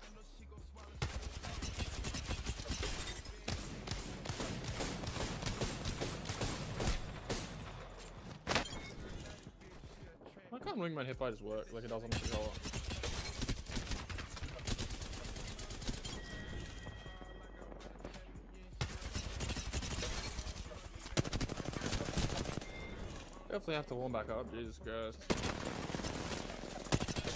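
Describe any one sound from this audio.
Rapid gunfire bursts in a video game.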